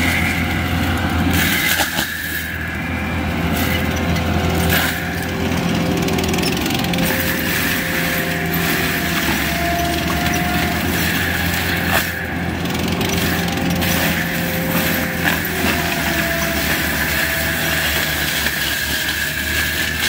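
A mulching drum whirs and grinds through soil and wood chips.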